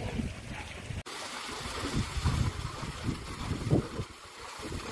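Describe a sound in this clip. A child splashes while swimming.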